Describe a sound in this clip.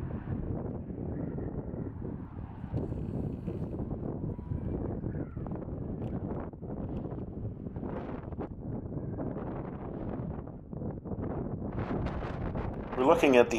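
Wind blusters loudly outdoors.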